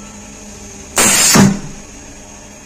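A machine press lifts with a short burst of hissing air.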